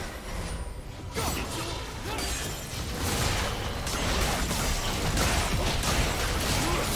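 Game spell effects crackle and burst during a battle.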